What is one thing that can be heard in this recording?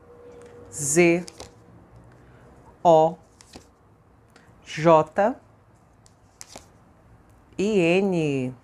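Playing cards slide and tap softly against each other.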